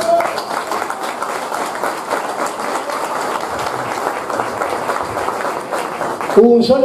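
A crowd claps and cheers loudly in a large echoing hall.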